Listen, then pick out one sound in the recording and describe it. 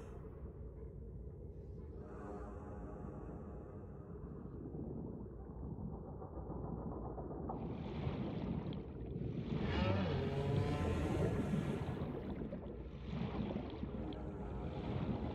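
A low underwater rumble hums steadily.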